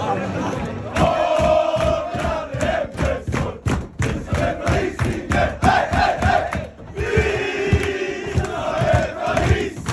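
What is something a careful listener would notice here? A crowd of men sings and chants loudly in an echoing room.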